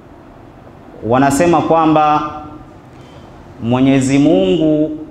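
A young man recites into a microphone in slow, melodic phrases.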